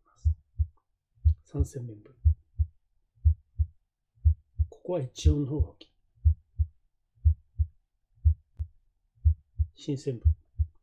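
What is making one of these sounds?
A heartbeat thumps steadily in pairs, heard through a stethoscope.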